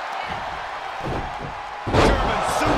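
A heavy body slams onto a wrestling ring's canvas.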